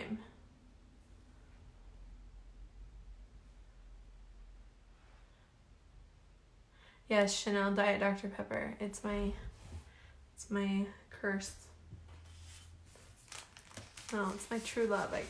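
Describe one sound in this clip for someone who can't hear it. Paper rustles softly under a hand.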